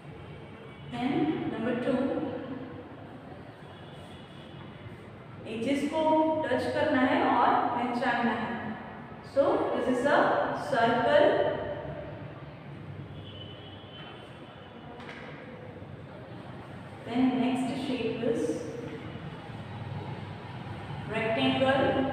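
A woman speaks clearly and calmly into a close microphone, in short phrases with pauses.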